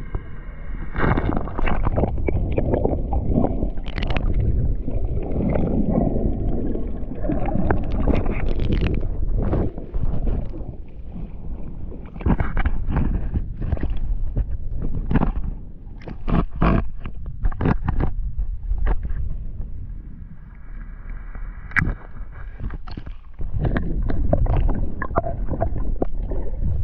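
Water rushes and gurgles underwater.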